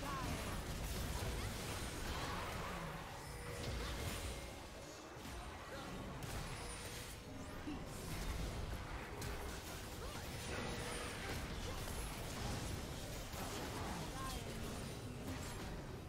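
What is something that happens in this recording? Magic blasts and weapon hits crackle and boom in a busy fight.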